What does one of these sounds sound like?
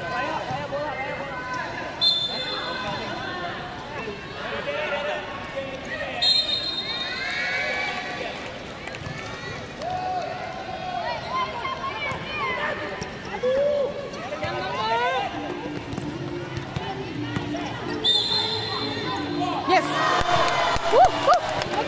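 Shoes squeak sharply on a hard court in a large echoing hall.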